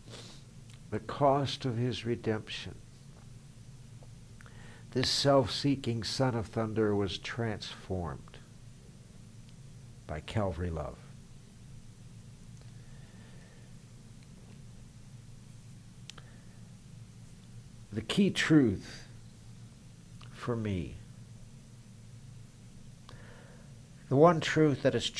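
An elderly man speaks calmly and close by, in short bursts with pauses.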